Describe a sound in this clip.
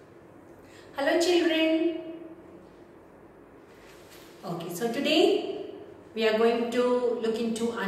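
A middle-aged woman reads aloud in a clear, expressive voice, close by.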